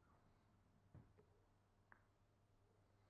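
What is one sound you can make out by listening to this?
A billiard ball knocks against a cushion.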